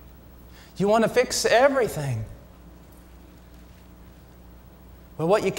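A man speaks with expression into a microphone in a large hall, pausing between phrases.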